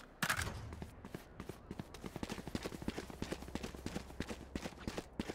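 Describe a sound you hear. Quick footsteps run over a hard stone floor.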